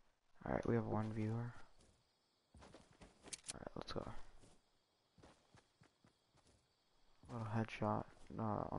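Footsteps run quickly across grass.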